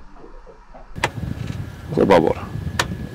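A key turns in a lock with a click.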